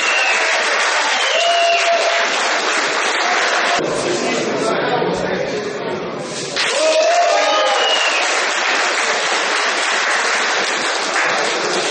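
A crowd cheers and shouts loudly in a large echoing hall.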